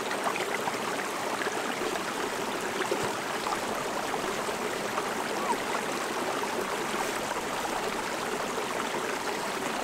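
A stream trickles and babbles over rocks nearby.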